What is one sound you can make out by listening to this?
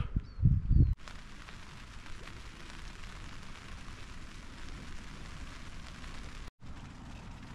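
Wind blows softly against a tent.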